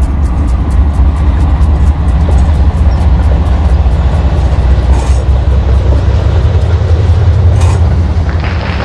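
Model train wheels click rhythmically over rail joints.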